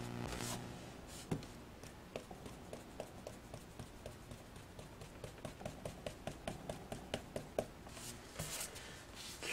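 A foam blending tool dabs softly and rhythmically on paper.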